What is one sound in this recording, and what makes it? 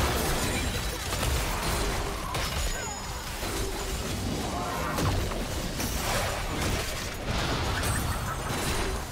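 Magic blasts whoosh and crackle in a busy video game battle.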